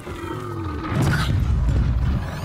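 Electric crackling bursts from a shocked machine.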